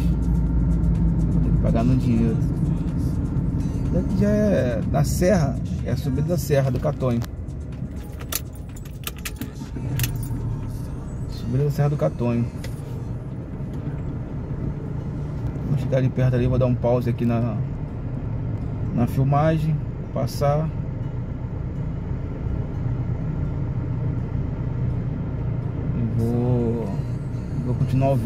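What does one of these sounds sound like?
A car engine hums steadily while rolling slowly in traffic.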